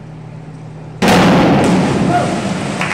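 A diver splashes into the water of an echoing pool.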